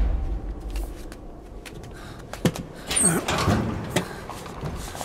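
A man pounds on a heavy door with his fists.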